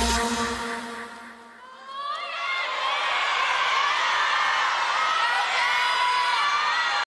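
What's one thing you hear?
Pop music plays loudly over loudspeakers, fading briefly and then swelling back.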